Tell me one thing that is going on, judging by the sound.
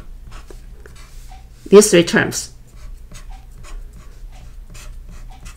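A marker squeaks and scratches across a board in short strokes.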